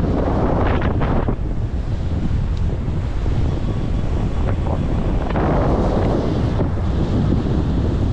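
Shallow surf washes and fizzes over sand.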